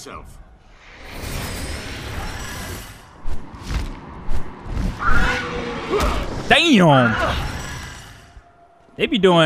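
Wings flap and swoop with a rushing whoosh.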